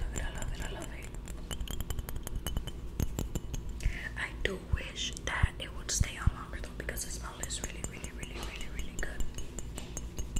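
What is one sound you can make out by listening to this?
A young person speaks softly and close up, almost whispering.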